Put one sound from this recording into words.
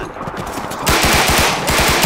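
Automatic gunfire rattles in rapid bursts nearby.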